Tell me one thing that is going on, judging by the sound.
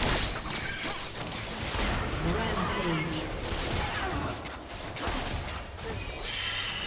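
Video game spells whoosh and crackle with fighting sounds.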